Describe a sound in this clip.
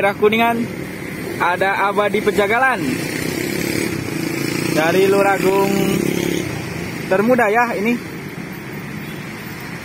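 Motorbike engines hum past on a street.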